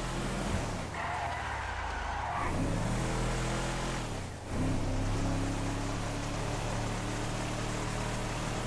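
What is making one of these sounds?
A pickup truck engine hums steadily as it drives along a road.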